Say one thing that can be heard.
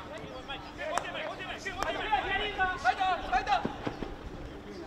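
Hockey sticks strike a ball with sharp cracks.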